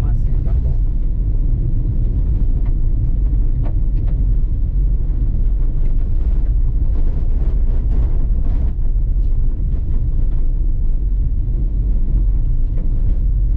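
Tyres crunch and rattle over a bumpy dirt road.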